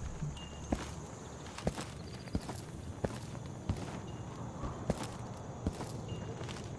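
Footsteps thud at a steady walking pace on a hard floor.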